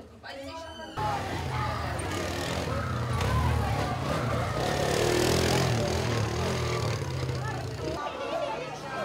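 A quad bike engine revs and drones.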